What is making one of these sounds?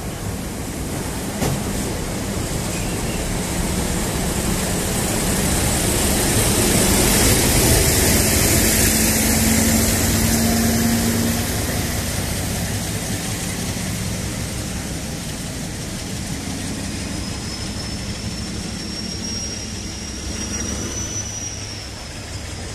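A freight train's wheels clatter and rumble steadily along the rails close by.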